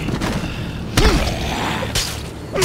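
A heavy blow thuds into a body.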